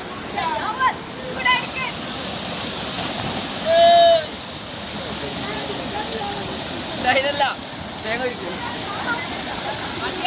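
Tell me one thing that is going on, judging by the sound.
Water rushes and splashes over rocks outdoors.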